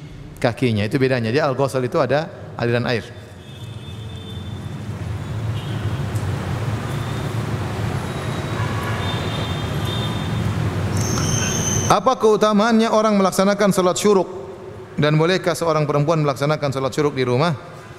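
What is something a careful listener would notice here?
A man speaks steadily into a microphone, close by.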